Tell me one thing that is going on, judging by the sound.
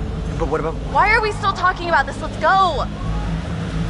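A young woman speaks impatiently, close by.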